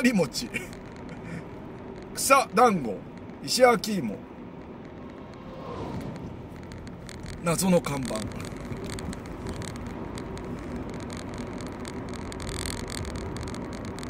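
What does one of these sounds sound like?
A car engine hums with steady road noise from inside the car.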